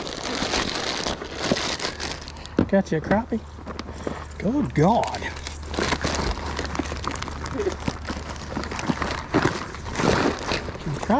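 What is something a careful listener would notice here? A bag's fabric rustles and crinkles as hands rummage through it.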